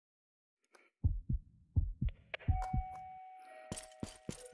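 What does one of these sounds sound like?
A revolver clicks and clatters as it is handled.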